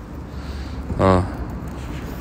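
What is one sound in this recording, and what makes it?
A dog gives a single short, high bark nearby.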